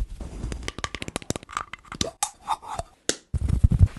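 A plastic container rattles close to a microphone.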